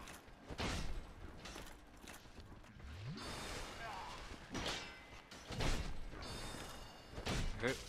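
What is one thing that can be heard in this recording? Bony skeletons rattle and clatter close by.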